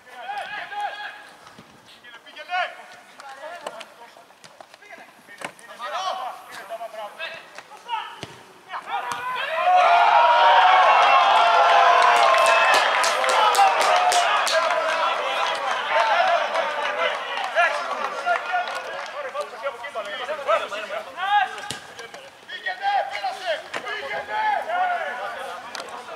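Young men shout to each other outdoors, some distance away.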